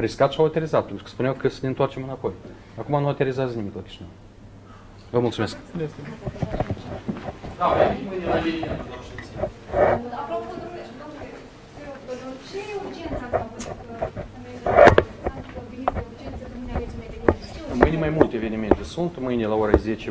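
A middle-aged man speaks firmly into microphones close by.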